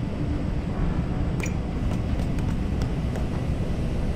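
Metal ladder rungs clank as someone climbs.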